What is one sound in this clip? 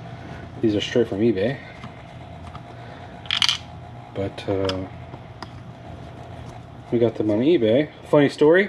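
A screwdriver scrapes and clicks against plastic parts.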